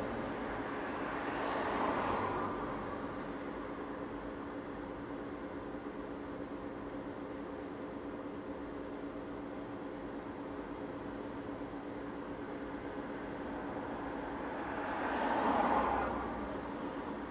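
A car passes by nearby on the street.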